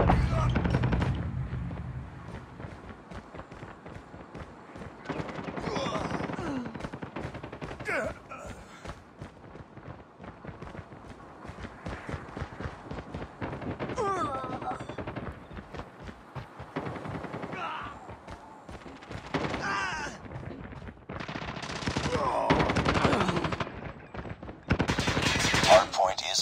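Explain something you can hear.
Footsteps patter quickly on dirt and wooden floors.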